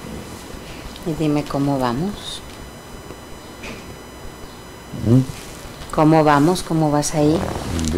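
A middle-aged man speaks in short bursts, close by.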